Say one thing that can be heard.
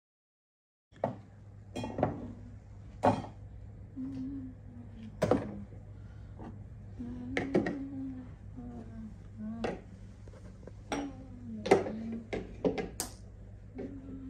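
Small objects clink and knock on a hard surface.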